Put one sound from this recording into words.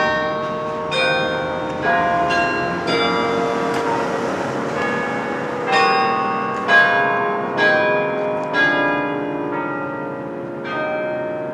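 Church bells ring a slow peal from a tower, each stroke ringing on and overlapping the next.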